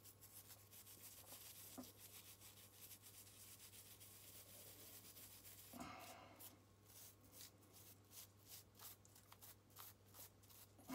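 A knife scrapes and scratches at a small object close by.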